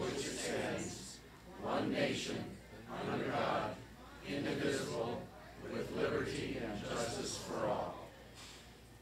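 A group of older men and women recite together in unison.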